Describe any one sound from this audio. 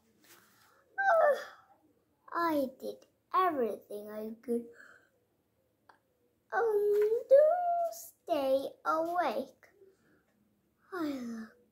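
A young girl reads aloud slowly, close by.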